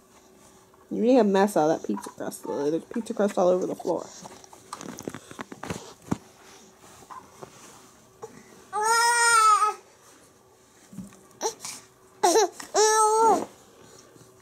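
A baby squeals and babbles close by.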